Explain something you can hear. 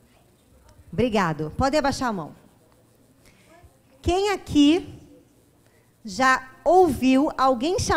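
A woman speaks with animation through a microphone in a room with some echo.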